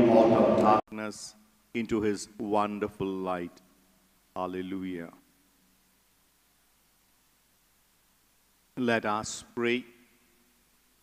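A man speaks slowly and calmly into a microphone, with pauses.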